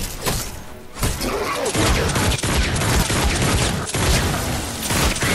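A gun fires in rapid shots.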